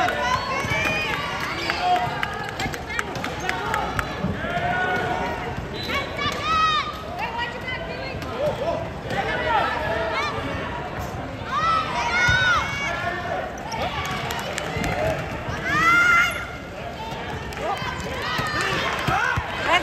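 A crowd of young people chatters and calls out.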